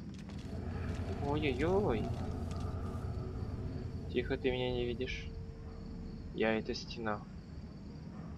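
A man mutters gruffly a short distance away.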